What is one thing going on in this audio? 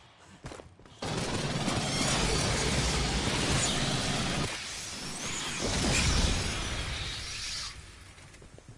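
Automatic rifle fire rattles in bursts.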